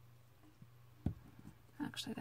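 A plastic bottle knocks down onto a wooden table.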